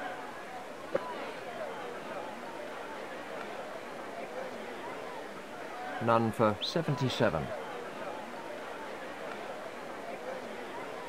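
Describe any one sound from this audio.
A crowd murmurs steadily in a large stadium.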